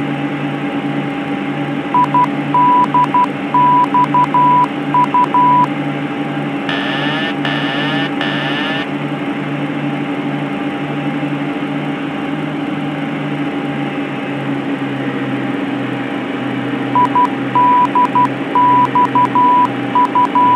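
A jet engine drones steadily with a low pulsing hum.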